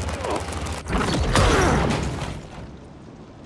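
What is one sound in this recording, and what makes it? A metal door is torn open with a loud, grinding crash.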